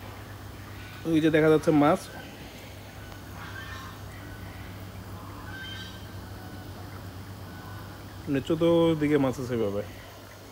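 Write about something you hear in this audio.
Water ripples and laps gently.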